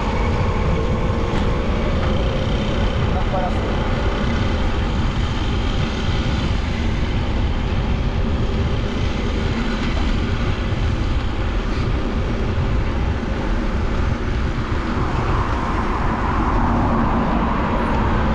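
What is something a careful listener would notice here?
Wind rumbles steadily against the microphone.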